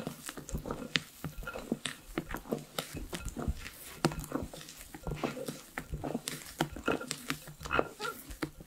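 A spatula folds thick batter in a glass bowl with soft squelching and scraping.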